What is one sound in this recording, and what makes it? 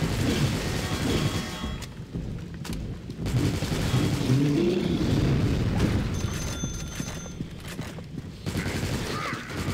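A submachine gun fires in bursts.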